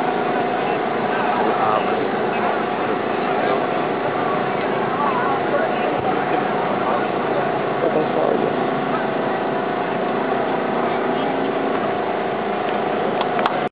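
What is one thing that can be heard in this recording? A crowd of people chatters and talks nearby outdoors.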